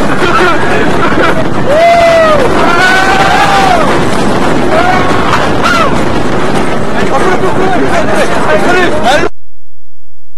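A roller coaster rattles along its track.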